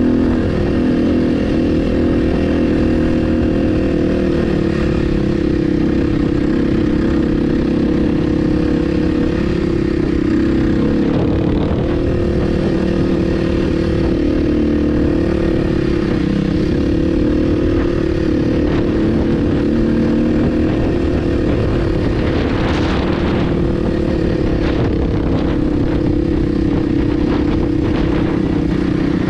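Tyres crunch and rattle over a bumpy dirt track.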